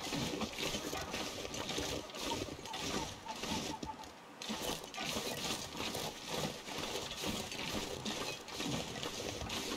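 Footsteps crunch steadily through deep snow.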